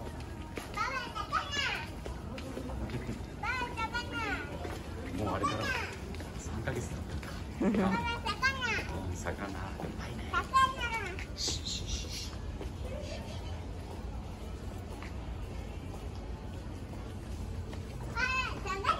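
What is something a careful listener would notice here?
A young girl talks and exclaims in a high voice close by.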